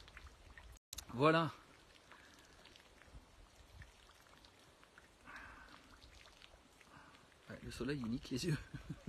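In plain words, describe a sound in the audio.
A man talks calmly close by.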